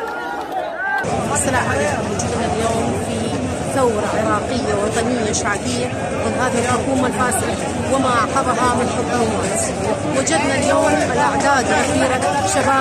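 A middle-aged woman speaks forcefully and close up.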